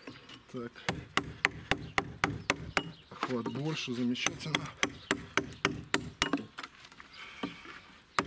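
A chisel taps and scrapes into wood in quick strokes.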